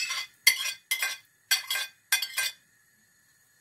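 A spoon scrapes food off a plate into a pot in quick strokes.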